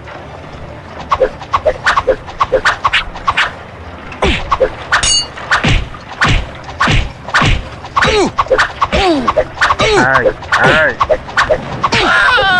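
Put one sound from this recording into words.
Swords clash and clang in a quick sword fight.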